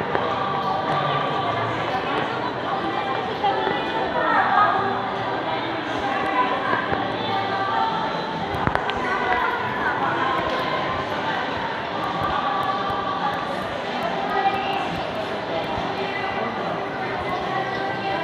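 Shoppers' voices murmur in a large echoing hall.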